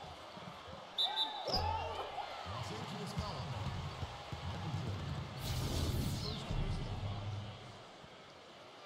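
A crowd in a large arena cheers and claps loudly.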